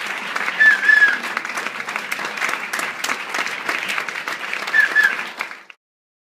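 A small guitar is strummed quickly.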